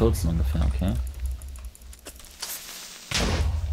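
A sword swings and strikes a creature with a thud.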